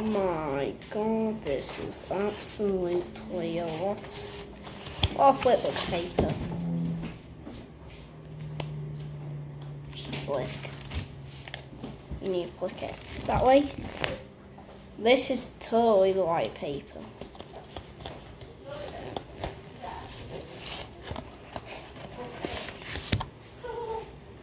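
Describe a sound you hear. Paper cards rustle and flick in hands.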